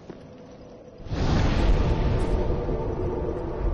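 A fire flares up with a loud roaring whoosh.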